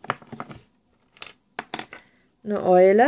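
Small plastic toys click and tap together in a hand.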